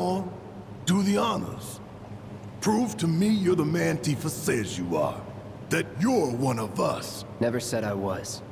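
A man speaks in a deep, gruff voice with animation.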